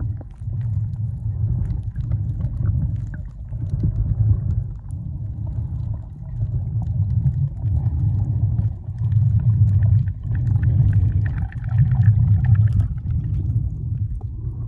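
Water rumbles and swirls, muffled underwater.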